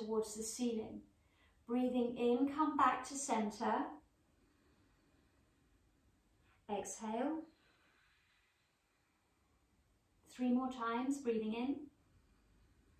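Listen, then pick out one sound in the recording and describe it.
A woman speaks calmly, giving slow instructions.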